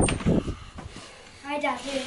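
A young boy speaks briefly.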